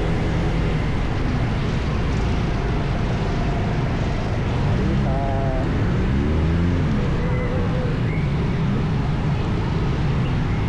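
Nearby motorcycle and truck engines rumble and rev in traffic.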